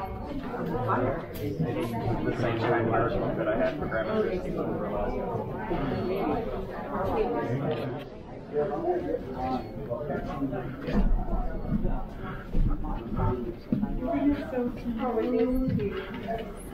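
A group of men and women talk nearby in a busy room.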